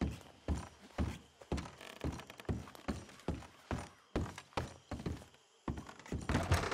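Heavy boots thud on wooden stairs at a steady pace.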